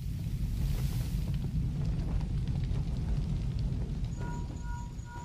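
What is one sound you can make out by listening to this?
Wind roars low and steady, then fades.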